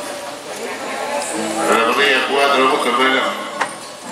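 Horses trot over soft dirt with muffled hoofbeats.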